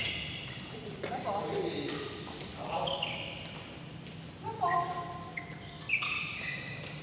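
Rackets strike a shuttlecock with sharp pops in an echoing hall.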